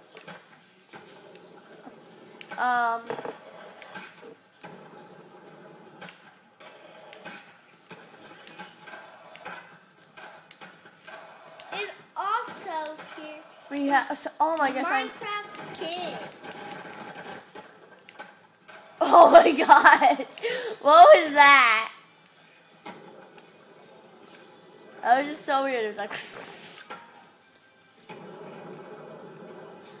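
Skateboard wheels clatter and grind through a television speaker.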